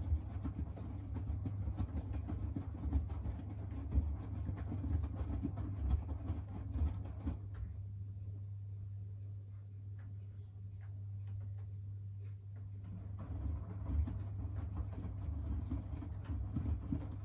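Wet laundry tumbles and thumps softly in a washing machine drum, pausing for a few seconds.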